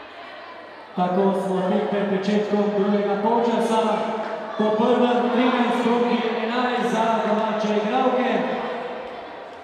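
A group of young women chant and cheer together loudly in a large echoing hall.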